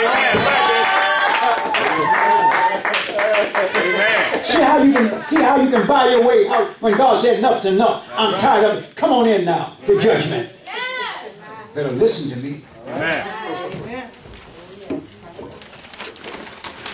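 An elderly man preaches with animation through a microphone in an echoing hall.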